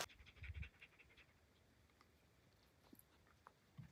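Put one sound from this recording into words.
A dog pants.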